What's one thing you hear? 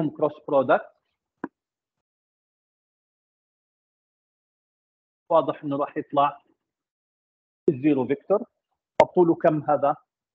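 An elderly man speaks calmly through a microphone, explaining in bursts with pauses.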